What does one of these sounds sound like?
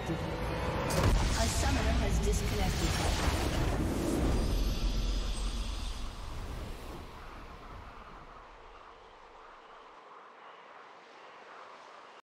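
A triumphant fanfare swells and then slowly fades.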